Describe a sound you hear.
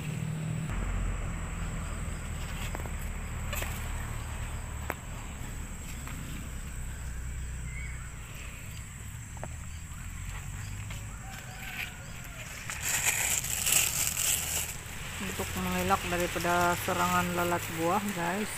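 Leaves rustle as a hand pushes through them.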